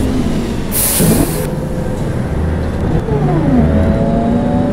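A diesel city bus's automatic transmission shifts up through its gears.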